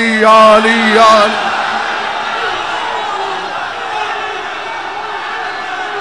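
A crowd of men chants loudly together.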